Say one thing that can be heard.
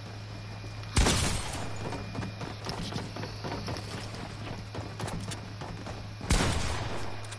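Gunshots boom loudly in a video game.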